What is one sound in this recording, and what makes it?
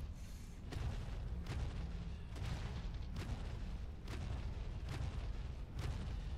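Heavy footsteps thud at a steady walking pace.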